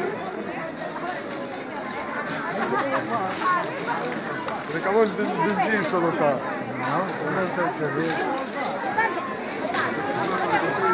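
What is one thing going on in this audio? Men and women talk with animation close by.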